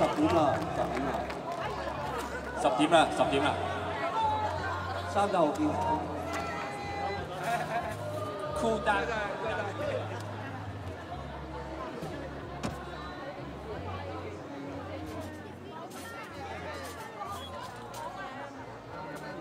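Street musicians play a lively tune.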